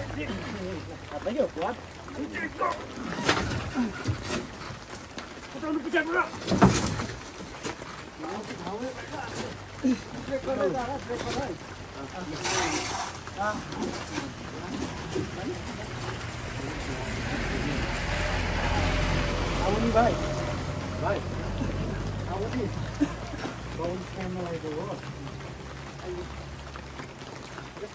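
Several men talk and call out to each other.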